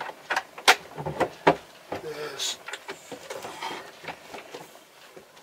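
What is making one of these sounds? Objects knock and clatter close by.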